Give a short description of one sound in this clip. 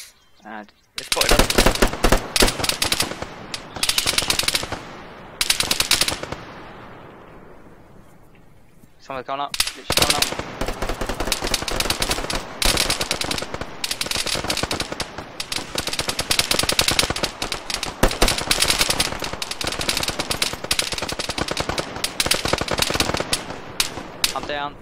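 Rapid gunfire rattles in bursts, loud and close.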